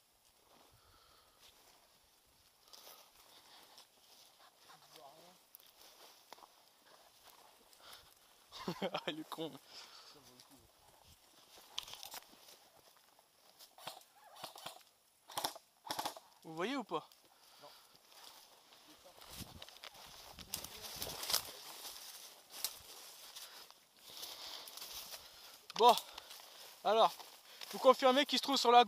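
Footsteps rustle through low undergrowth.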